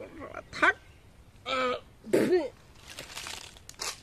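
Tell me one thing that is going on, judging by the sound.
A young man groans and cries out in pain.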